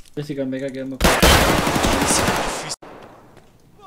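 Gunshots fire rapidly at close range.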